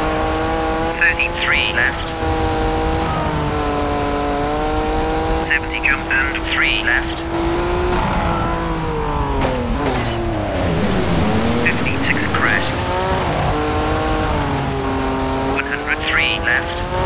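Tyres skid and scrabble on loose gravel.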